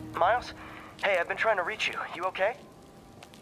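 A man speaks through a phone.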